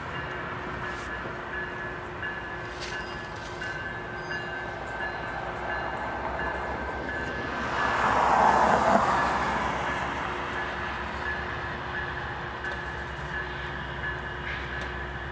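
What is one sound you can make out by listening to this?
A train engine rumbles closer and grows louder, then eases off.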